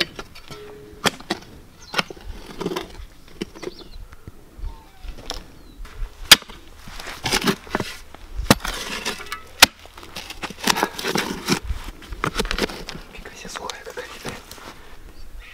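A shovel scrapes and crunches into soil.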